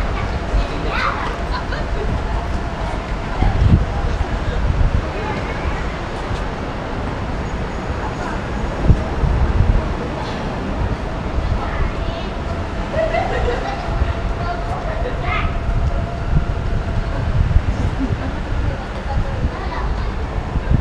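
Traffic rumbles steadily along a city street.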